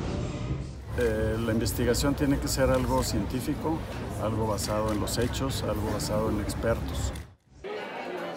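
A middle-aged man speaks calmly into reporters' microphones outdoors.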